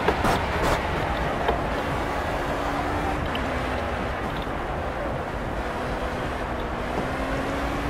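An open-wheel racing car engine drops in pitch as the car brakes and shifts down.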